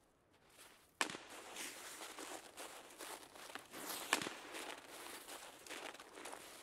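Footsteps rustle through dry brush and snow.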